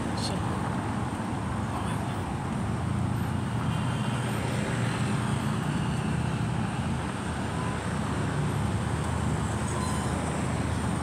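Traffic hums along a nearby road.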